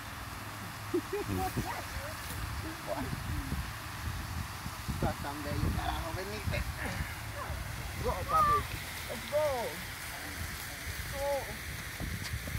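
A small child babbles softly.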